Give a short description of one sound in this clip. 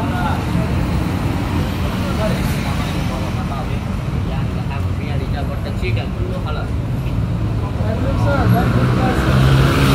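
Footsteps walk on pavement.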